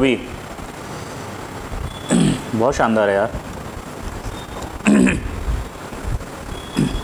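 A man speaks close to a microphone with expressive, drawn-out sounds of enjoyment.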